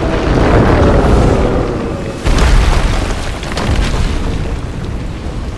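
Rocks crash and rumble as they tumble down.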